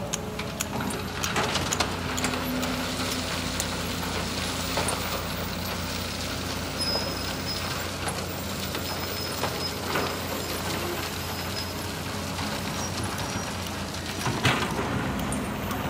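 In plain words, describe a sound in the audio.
An excavator bucket dumps rocks and earth into a truck bed with a clattering rush.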